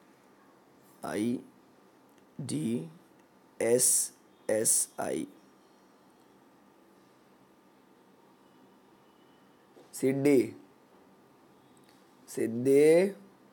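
A young man speaks calmly and close to a microphone, in short phrases with pauses.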